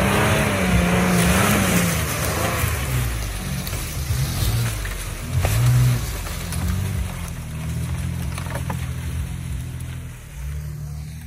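An engine rumbles and revs nearby.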